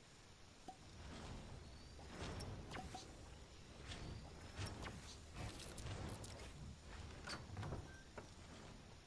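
Sharp clicks and knocks sound as a game character builds wooden walls.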